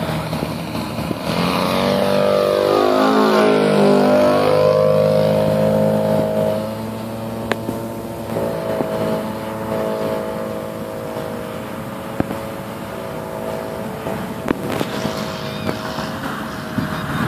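A small propeller plane's engine drones loudly as it flies low overhead, its pitch sweeping down as it passes, then hums on in the distance.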